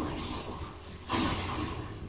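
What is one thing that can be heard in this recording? A flame bursts with a sudden whoosh.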